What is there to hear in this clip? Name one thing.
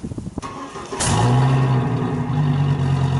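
A truck's exhaust rumbles up close.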